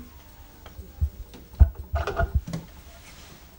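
Plastic tape reels clack and knock as they are fitted onto a tape deck.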